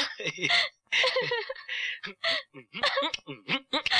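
A young woman cries.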